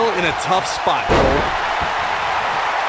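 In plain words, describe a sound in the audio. A body slams hard onto a wrestling mat.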